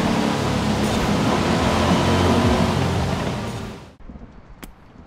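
A sports car engine roars loudly.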